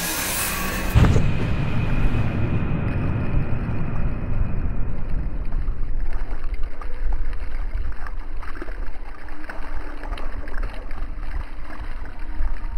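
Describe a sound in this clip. Water rumbles and bubbles deeply, heard from below the surface.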